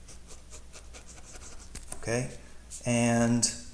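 A pen scratches briefly on paper.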